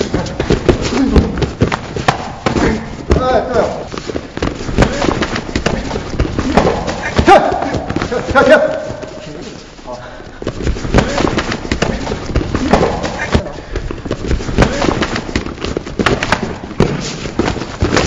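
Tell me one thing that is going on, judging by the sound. Feet shuffle and stamp on a mat.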